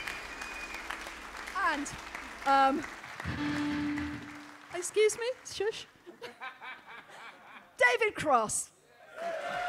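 A harmonica wails and bends through loudspeakers.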